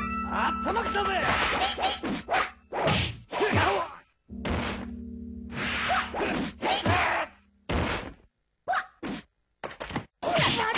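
Fighters in a video game slash and strike with sharp hits.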